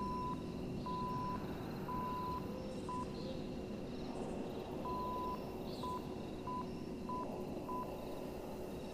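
An old radio set gives out short and long beeps.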